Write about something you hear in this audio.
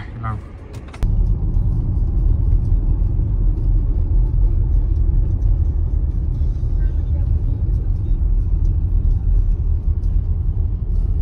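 A car's engine and tyres rumble low and steady while driving.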